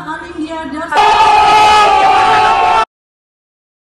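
A young woman shouts loudly, close by.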